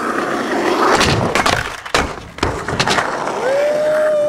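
A skateboard clacks sharply against a ledge.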